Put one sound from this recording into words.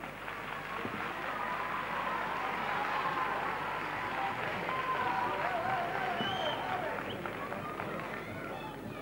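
A group of men and women sing together, heard from a distance in a large hall.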